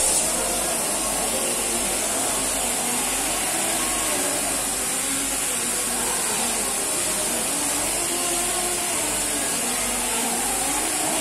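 An air-powered tool hisses and buzzes steadily against metal.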